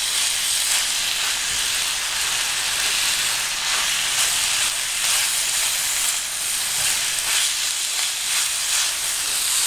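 Ground meat sizzles in a frying pan.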